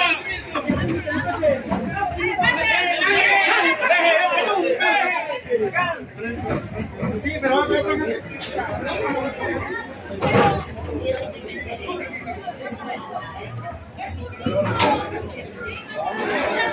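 A crowd of men shout and chant angrily outdoors.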